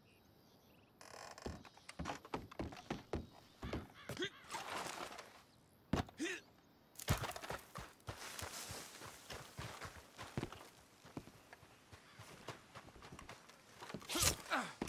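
Heavy footsteps thud on wooden boards and ground.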